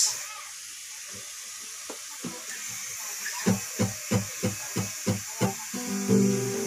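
An acoustic guitar is strummed softly.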